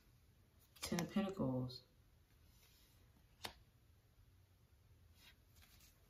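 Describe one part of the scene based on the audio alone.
A card is slapped down onto a table with a light tap.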